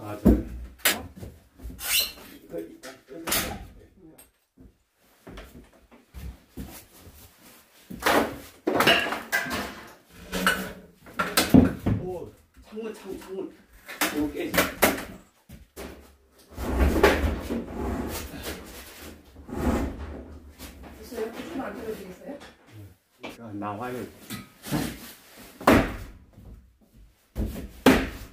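Wooden planks knock and scrape against a metal frame.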